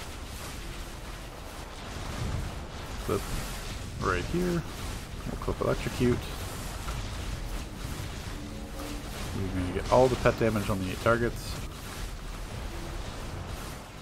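Electric blasts crackle and zap in quick bursts.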